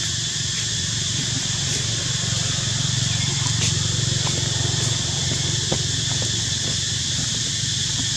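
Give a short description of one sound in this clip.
Dry leaves rustle under a small monkey's feet.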